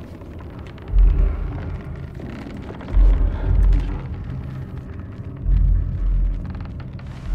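Deep hollow thuds sound as something lands on a piano.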